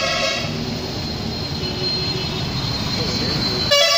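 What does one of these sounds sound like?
Motorbikes buzz past.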